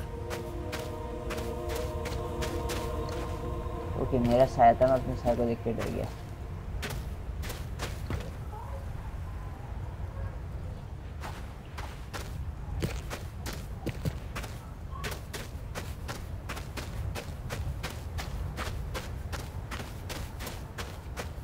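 Footsteps crunch steadily on dry dirt and gravel.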